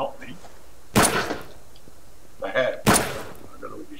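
A shotgun fires loud, sharp blasts.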